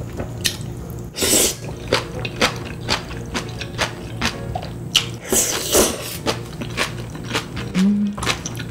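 A young woman chews wetly with smacking sounds.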